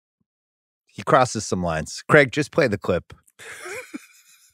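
Another man talks with animation into a close microphone.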